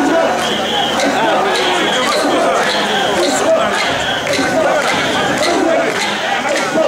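A crowd of men chants and shouts loudly outdoors.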